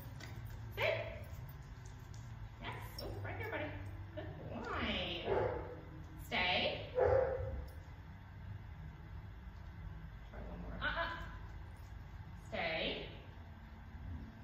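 A woman speaks to a dog in a bright, encouraging voice close by.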